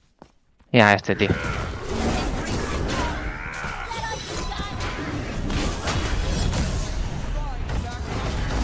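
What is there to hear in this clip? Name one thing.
Game fight sounds clash and crackle.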